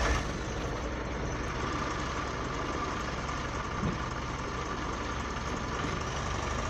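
Construction work rumbles steadily in the distance.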